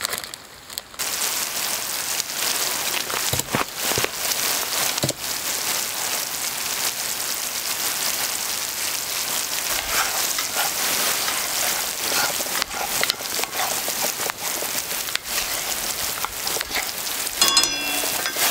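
A thick sauce sizzles and bubbles in a hot pan.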